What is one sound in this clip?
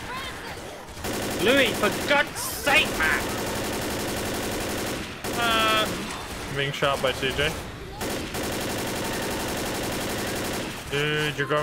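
Automatic gunfire rattles rapidly.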